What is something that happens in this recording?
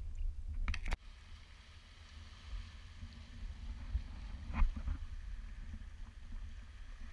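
Small waves lap and wash onto a pebble shore.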